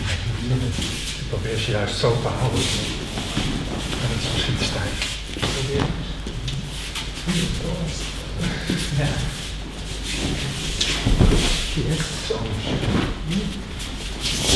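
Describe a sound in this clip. Bare feet shuffle and slide on mats.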